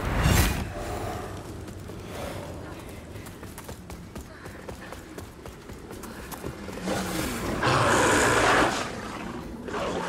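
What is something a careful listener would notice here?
Footsteps tread on stone.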